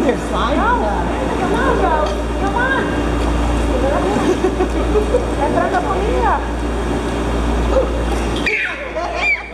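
A woman talks cheerfully close by.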